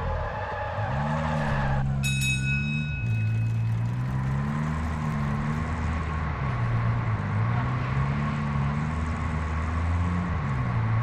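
A car engine hums and revs as the vehicle drives.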